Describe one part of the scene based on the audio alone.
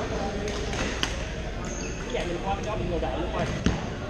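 Badminton rackets smack a shuttlecock in a large echoing hall.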